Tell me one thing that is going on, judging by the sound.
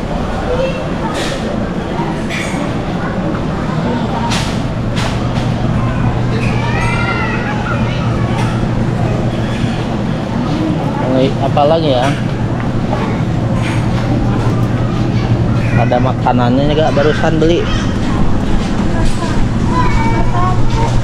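A shopping cart rattles as its wheels roll over a tiled floor.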